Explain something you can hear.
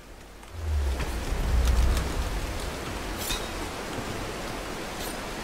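Hands and feet scrape against rock while climbing.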